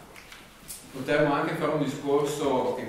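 A young man speaks calmly and clearly.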